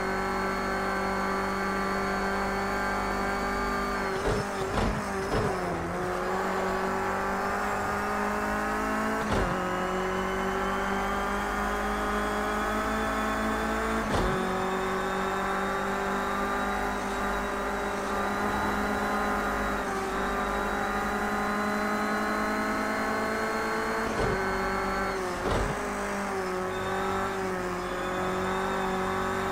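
A racing car engine roars steadily, dropping in pitch at each gear change and climbing again as it speeds up.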